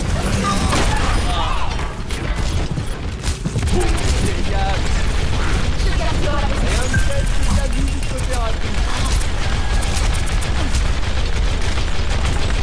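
Rapid weapon fire crackles and pops.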